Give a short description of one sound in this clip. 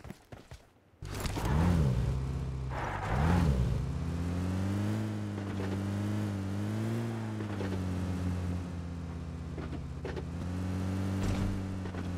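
An off-road jeep engine revs as the jeep drives off.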